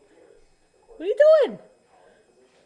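A dog lets out a short, rising and falling whine.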